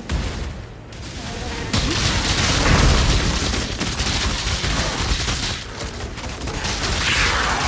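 Fiery spell blasts and explosions crackle and boom in a computer game battle.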